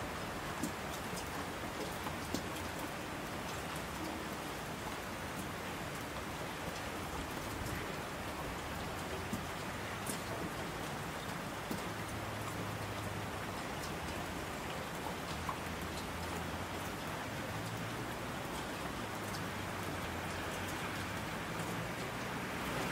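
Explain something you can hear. Rushing streams roar down slopes.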